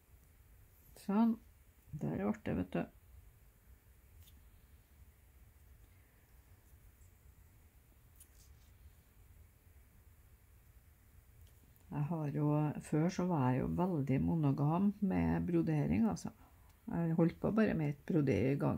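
Thread rasps softly as it is pulled through cloth.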